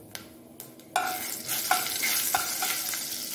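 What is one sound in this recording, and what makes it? A spatula scrapes and clinks against a pan.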